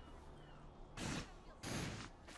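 A loud whooshing rush of air sweeps past twice.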